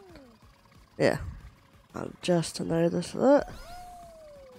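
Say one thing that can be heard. Cartoonish game sound effects boing and chime.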